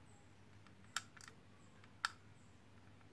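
A small plastic clip clicks shut against a battery.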